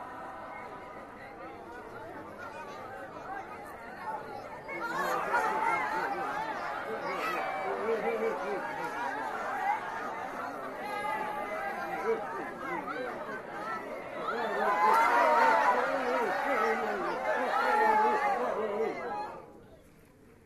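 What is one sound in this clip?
A choir of men and women sings together.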